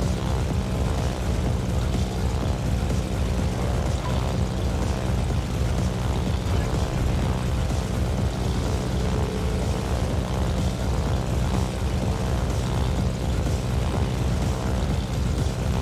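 Propeller plane engines drone steadily.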